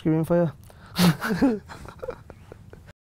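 Two men laugh briefly.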